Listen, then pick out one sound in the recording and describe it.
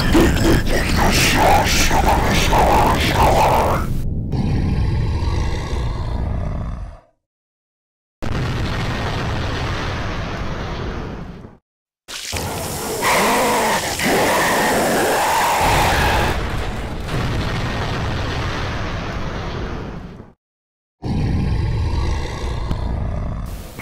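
Heavy thrusters roar as a giant robot flies.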